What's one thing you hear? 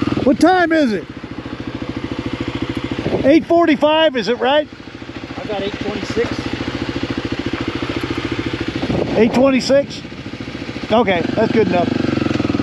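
A motorcycle engine revs sharply in short bursts.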